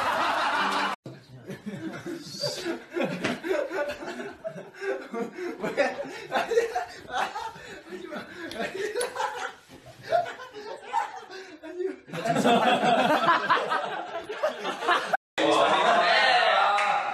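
Young men talk and laugh loudly close by.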